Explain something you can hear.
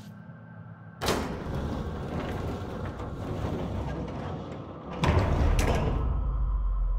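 A lift rumbles and hums as it moves.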